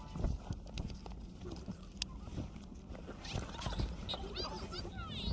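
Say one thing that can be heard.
Hands bump and rub against a plastic tablet case.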